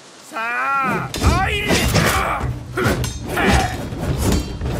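Steel swords clash and ring in quick strikes.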